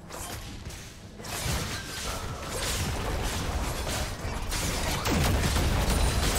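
Magical blasts and impacts crackle and boom in a rapid fight.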